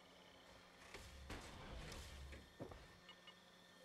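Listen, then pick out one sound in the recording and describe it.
Heavy metal armor clanks and hisses as it locks shut.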